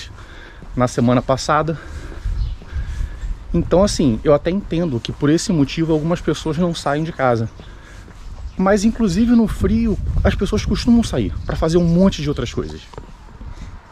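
A man talks calmly close to a microphone.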